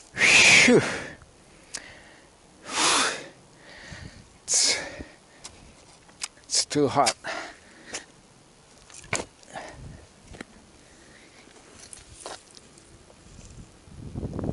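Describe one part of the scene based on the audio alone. A shovel scrapes and thuds into earth nearby.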